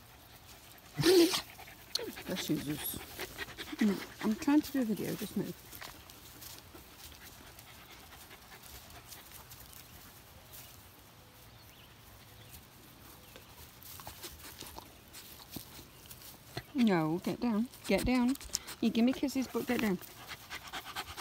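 A small dog barks and growls playfully close by.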